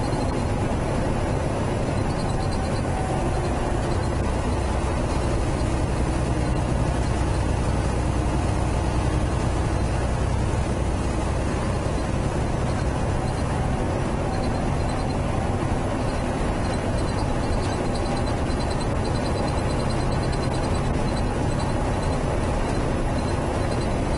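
A truck's diesel engine drones steadily inside the cab.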